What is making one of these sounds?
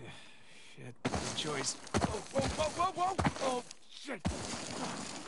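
A man exclaims loudly in alarm.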